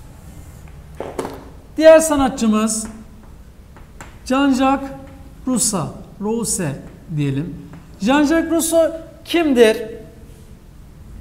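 A young man speaks calmly, close by, in a slightly echoing room.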